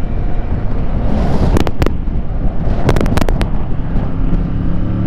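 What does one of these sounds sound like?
A car passes close by with a brief whoosh.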